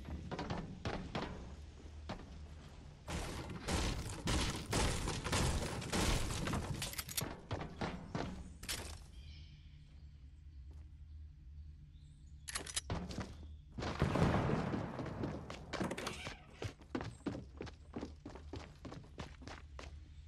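Wooden walls are placed with sharp knocking clacks.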